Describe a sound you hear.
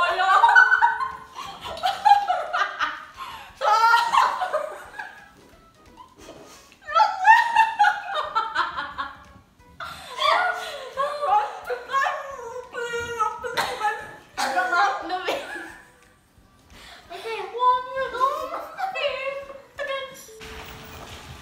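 Young women laugh loudly together close by.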